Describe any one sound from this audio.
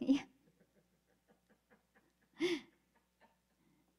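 A woman laughs softly.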